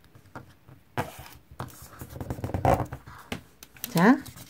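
Paper rustles and crinkles as it is folded and creased.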